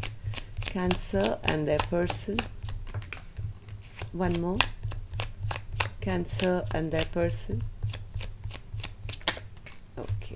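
Playing cards are shuffled and flicked by hand.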